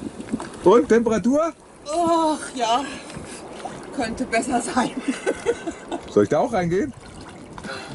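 A woman gasps and cries out in cold water, close by.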